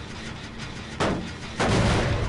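A heavy weapon swings and strikes with a loud crash.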